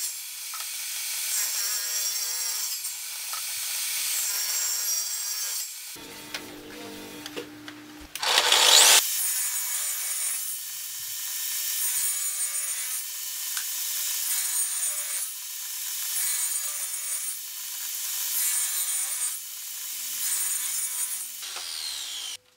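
A table saw blade rasps through wood in repeated cuts.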